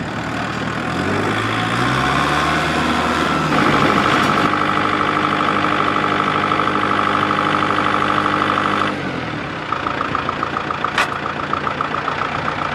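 A tractor engine revs up and then runs steadily.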